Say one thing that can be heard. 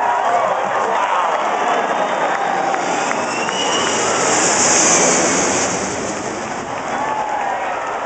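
A large jet plane roars low overhead, growing loud and then fading.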